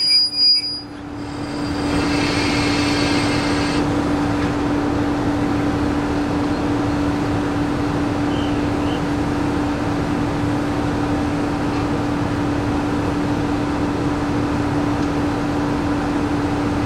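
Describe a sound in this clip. A diesel engine idles steadily close by.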